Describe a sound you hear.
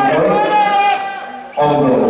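A ball is kicked hard.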